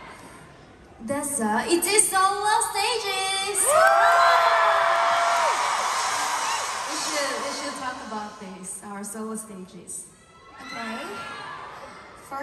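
A young woman speaks into a microphone through loudspeakers.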